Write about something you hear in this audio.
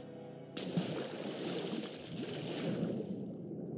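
A body plunges into water with a splash.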